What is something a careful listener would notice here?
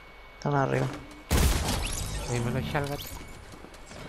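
A gun fires a short burst of shots.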